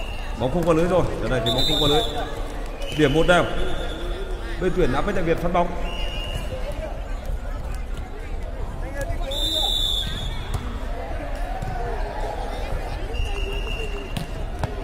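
A volleyball thumps against forearms.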